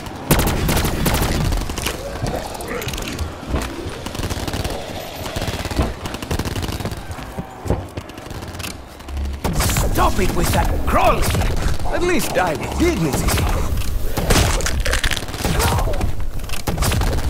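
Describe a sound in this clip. Rapid gunfire crackles and bursts in a video game.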